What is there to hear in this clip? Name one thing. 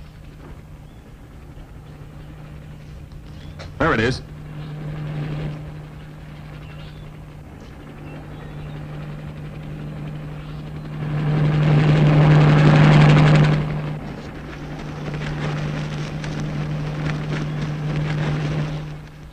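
A helicopter engine drones overhead, growing louder as it passes close.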